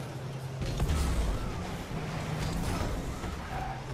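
A ball thuds off a car.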